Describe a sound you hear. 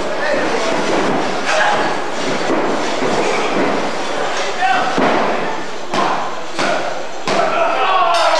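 Bodies slam onto a wrestling mat with loud thuds.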